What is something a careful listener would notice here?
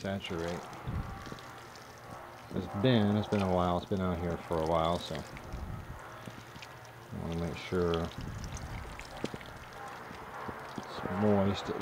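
Water sprinkles from a watering can onto soil with a soft patter.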